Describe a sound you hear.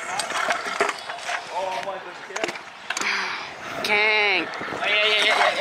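Scooter wheels roll and rattle over concrete.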